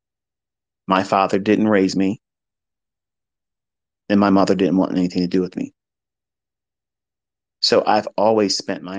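A man speaks in short bursts with pauses, close to a microphone.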